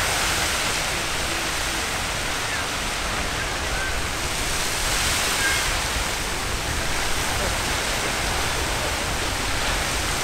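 A geyser roars and hisses steadily as water and steam shoot upward outdoors.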